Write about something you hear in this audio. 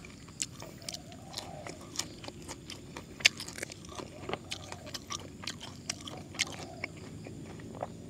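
Crisp greens snap and crunch while being eaten.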